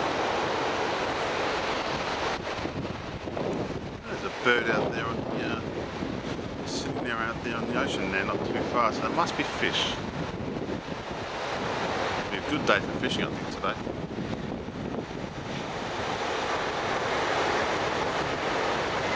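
Wind blows across the microphone outdoors.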